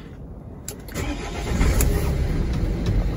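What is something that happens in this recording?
A car engine starts and idles with a low rumble.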